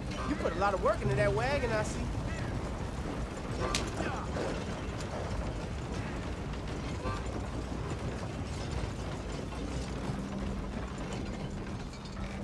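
A horse-drawn wagon rumbles and creaks along a dirt road.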